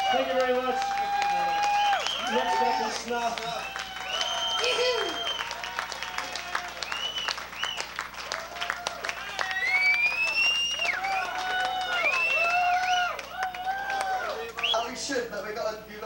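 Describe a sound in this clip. An electric guitar squeals and wails with feedback.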